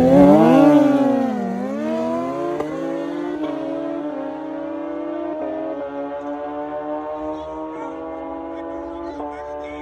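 Motorcycle engines rise and fall in pitch as the riders shift gears.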